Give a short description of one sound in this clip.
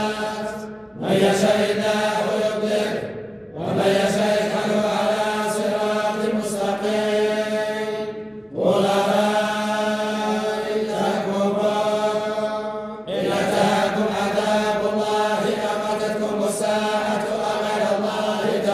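A group of men chant together in unison, in a large echoing hall, with long held notes and short pauses for breath.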